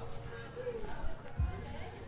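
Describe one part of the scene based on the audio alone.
A chicken clucks nearby.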